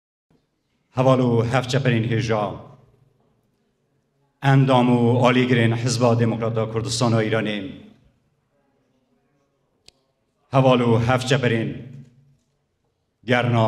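A middle-aged man speaks calmly into a microphone, in bursts with pauses, heard through a loudspeaker.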